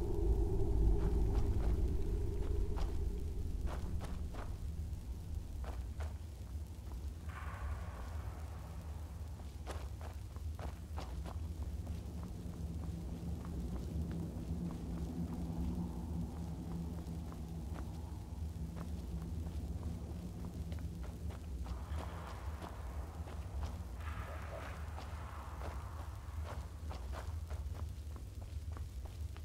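Magic spells hum and crackle steadily.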